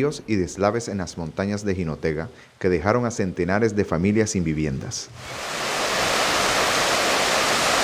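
A muddy stream rushes over stones.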